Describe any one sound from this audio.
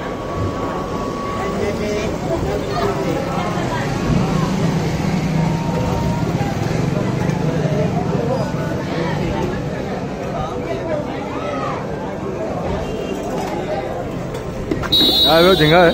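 A busy street murmurs with voices and traffic outdoors.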